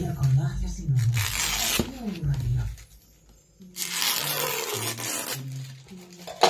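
Wrapping paper crinkles and rustles under hands.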